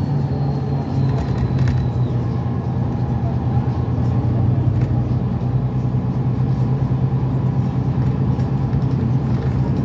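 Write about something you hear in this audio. A vehicle's engine rumbles steadily from inside, heard through a closed window.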